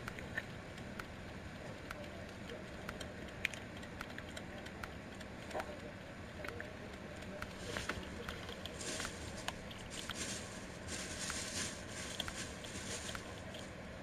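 Soft menu clicks tick repeatedly.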